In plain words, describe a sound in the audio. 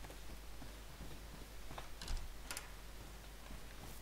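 A door opens with a knock.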